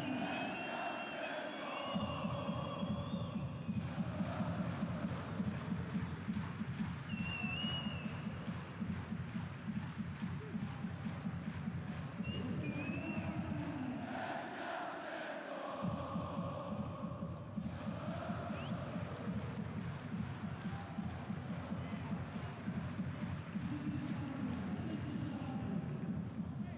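A large crowd chants and cheers in an open stadium.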